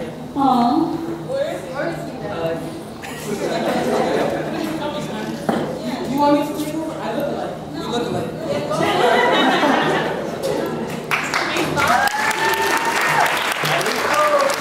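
A young woman speaks calmly into a microphone, heard through loudspeakers in an echoing hall.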